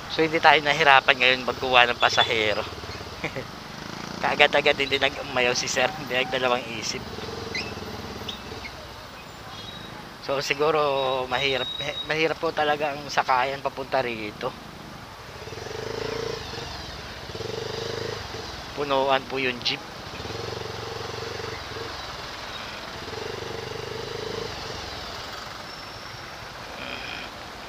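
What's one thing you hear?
Traffic rumbles nearby.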